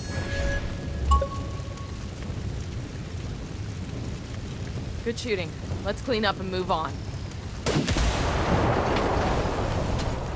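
A fire roars and crackles steadily.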